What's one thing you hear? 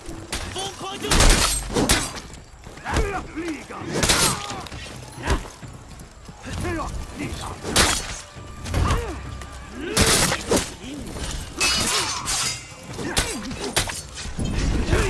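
Swords clash and clang in a fierce melee.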